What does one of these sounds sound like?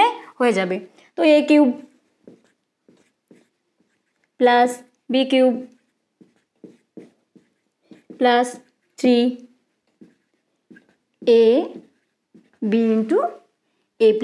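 A young woman speaks clearly and slowly in short phrases, close by.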